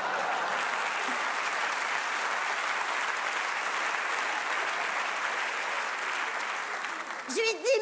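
A large audience applauds and cheers in a big echoing hall.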